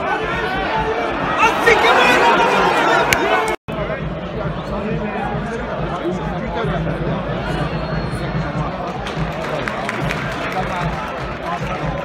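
A crowd of spectators cheers and chants from stands outdoors.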